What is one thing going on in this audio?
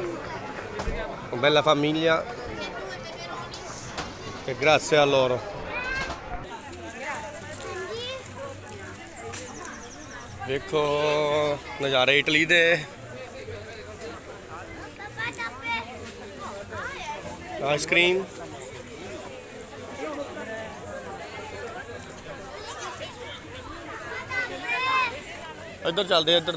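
A crowd chatters outdoors in the background.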